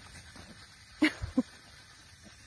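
A puppy yips sharply twice.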